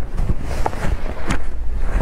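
Paper crinkles close by.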